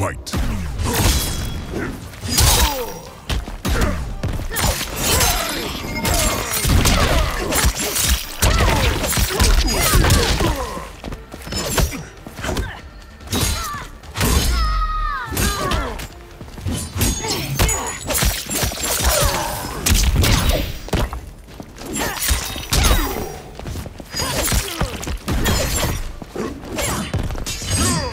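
Blades slash and clang.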